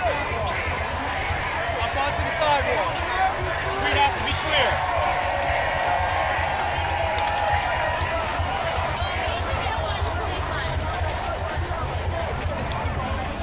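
A crowd of people chatters outdoors all around.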